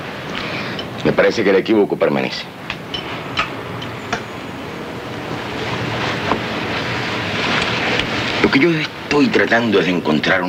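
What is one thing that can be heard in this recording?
A second man answers in a lively voice close by.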